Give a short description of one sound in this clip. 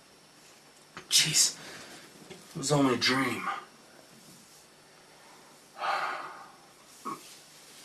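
A man groans and sighs sleepily close by.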